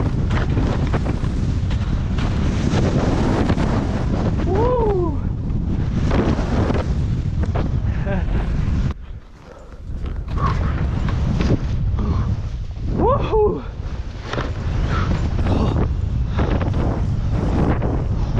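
Wind rushes loudly past close by.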